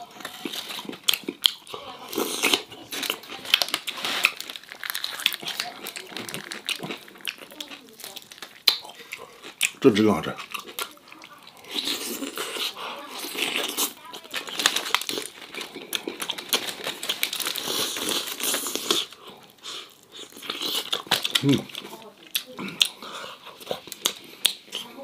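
Aluminium foil crinkles as hands tear apart a roast chicken.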